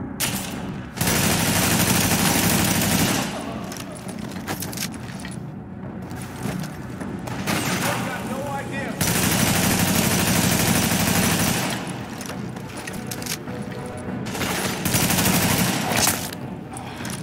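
Automatic rifle fire rattles in loud bursts in a large echoing hall.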